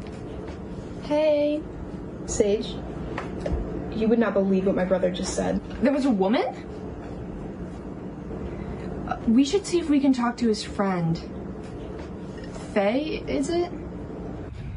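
A young woman speaks on a phone with animation, close by.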